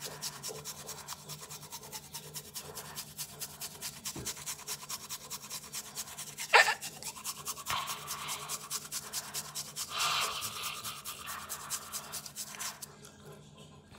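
A toothbrush scrubs rapidly against a tongue.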